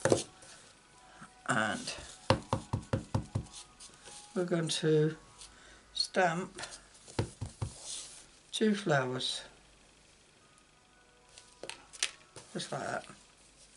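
A stamping block knocks and taps against a tabletop.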